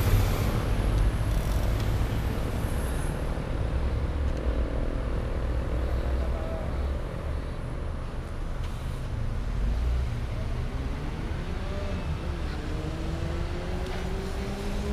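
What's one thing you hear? Traffic hums steadily nearby.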